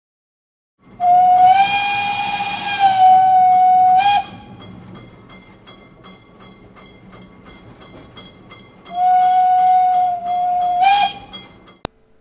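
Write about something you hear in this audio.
A small steam engine whistle blows in long shrill blasts.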